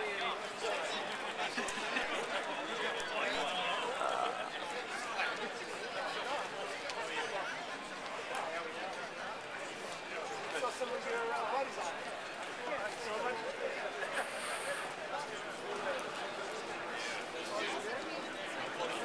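A large crowd of men and women chatters outdoors all around.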